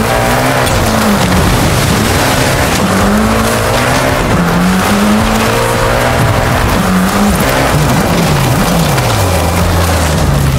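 A rally car engine roars and revs up and down as the car speeds along.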